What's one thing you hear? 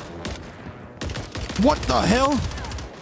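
A submachine gun fires.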